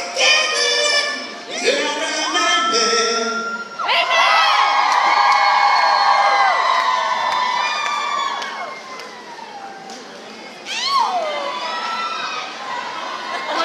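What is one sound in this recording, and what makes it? A young man talks into a microphone, amplified over loudspeakers in a large echoing hall.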